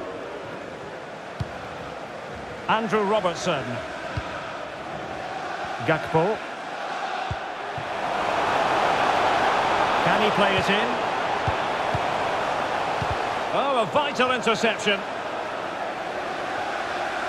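A stadium crowd roars steadily, swelling louder midway.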